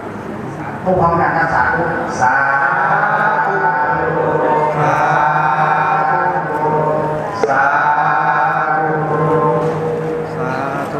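Monks chant together in low steady voices.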